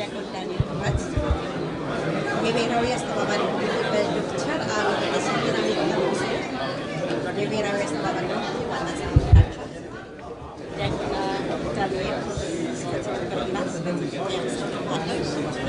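A woman speaks with animation into a microphone, close by.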